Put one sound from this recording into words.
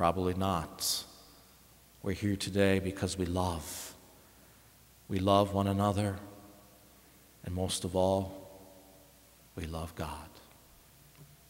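A middle-aged man speaks slowly and calmly through a microphone in a large echoing hall.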